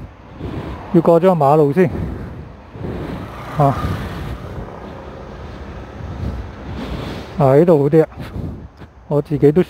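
Wind blows outdoors across the microphone.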